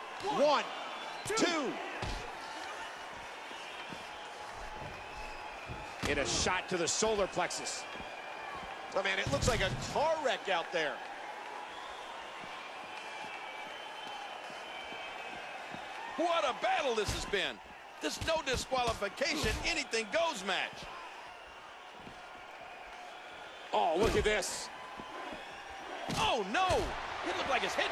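A crowd cheers and murmurs steadily in a large arena.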